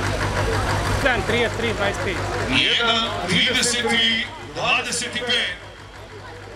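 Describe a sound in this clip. Men shout loudly and encourage.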